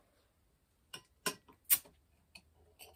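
A bottle cap clicks and pops off a glass bottle.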